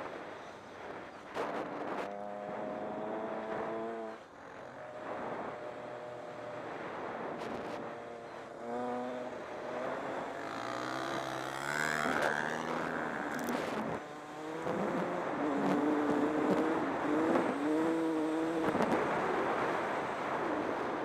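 Tyres crunch over gravel.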